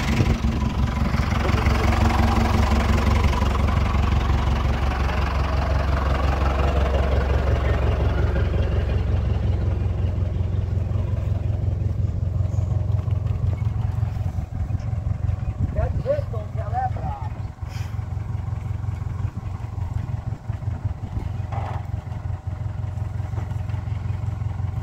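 A truck engine idles with a steady low rumble nearby.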